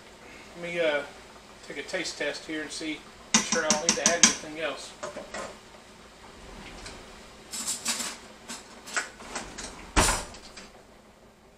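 A utensil scrapes and clinks against a metal pot.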